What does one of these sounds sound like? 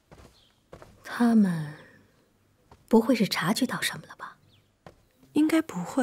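A young woman speaks in a low, worried voice.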